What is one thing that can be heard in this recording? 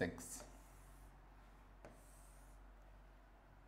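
A marker rubs faintly across a board.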